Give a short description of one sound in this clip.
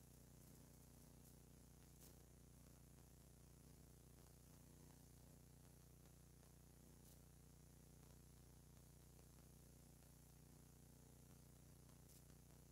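Fingers rub and crumble soft flour in a plastic bowl.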